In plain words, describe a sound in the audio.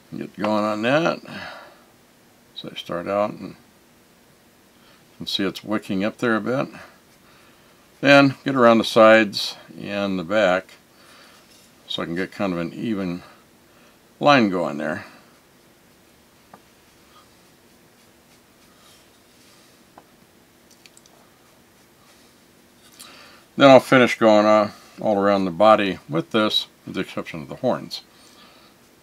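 A man talks calmly and close to the microphone, in short bursts with pauses.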